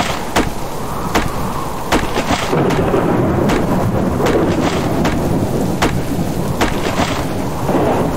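An axe chops into a tree trunk with sharp knocks.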